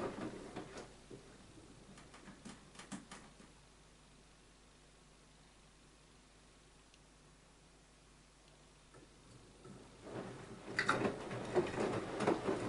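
Water sloshes and splashes inside a turning washing machine drum.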